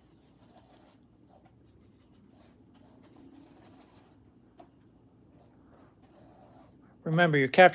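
A paintbrush swishes and dabs softly on canvas.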